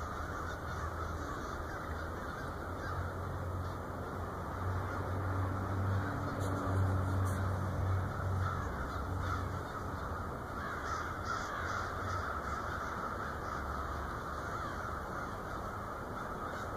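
A large flock of birds calls and chatters overhead.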